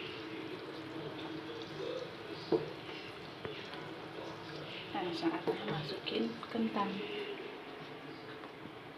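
Sauce bubbles and simmers in a pan.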